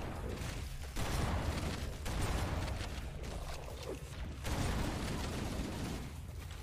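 Rapid gunfire blasts in loud bursts.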